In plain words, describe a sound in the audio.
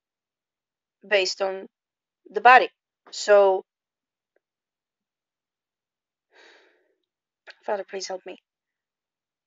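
A young woman speaks calmly and close up, in short phrases with pauses.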